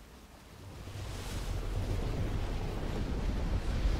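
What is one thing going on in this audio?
A deep, rushing wind roars.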